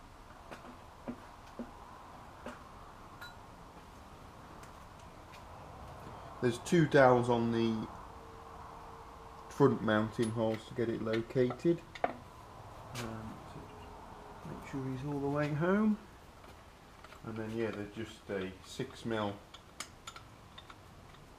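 Metal parts clink and knock as they are handled.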